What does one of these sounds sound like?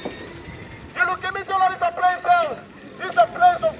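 A man shouts through a loudhailer with a harsh, tinny sound.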